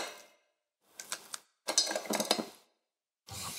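Ice cubes clink in a glass.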